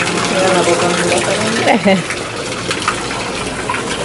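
Water from a small fountain splashes into a pond.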